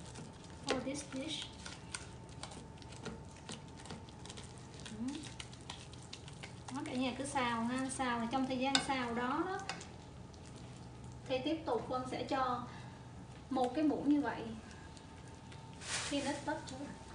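Meat sizzles gently in a hot pan.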